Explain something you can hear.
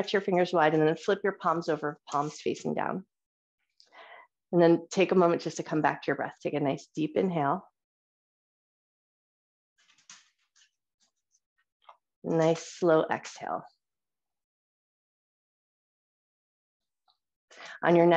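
A woman speaks calmly through a microphone on an online call.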